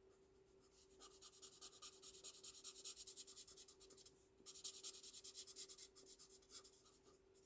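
A marker tip scratches softly on paper.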